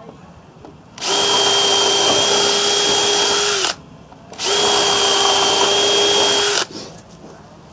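A cordless drill whirs in two long bursts, driving screws into wood.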